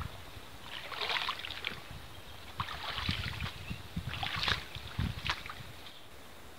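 Water splashes as a man wades in from the bank.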